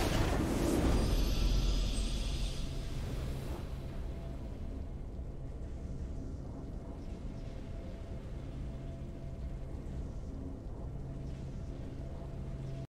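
A soft victory tune plays with steady low tones.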